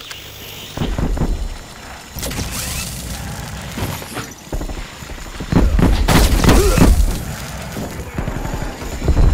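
A small electric motor whirs and revs as a remote-controlled car drives over rough ground.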